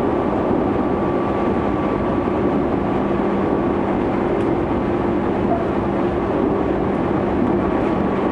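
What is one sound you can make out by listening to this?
An electric commuter train runs at speed, heard from inside a carriage.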